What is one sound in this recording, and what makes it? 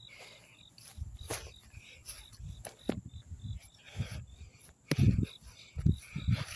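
A toy figure brushes and rustles through grass.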